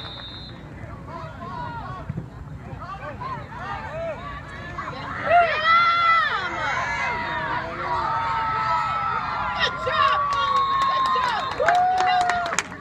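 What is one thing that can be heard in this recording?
A crowd of adults shouts and cheers excitedly nearby, outdoors.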